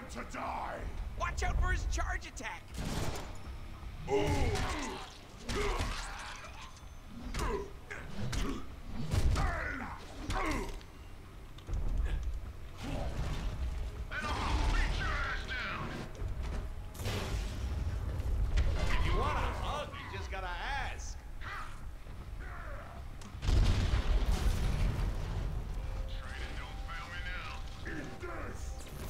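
Men grunt and cry out as they are struck.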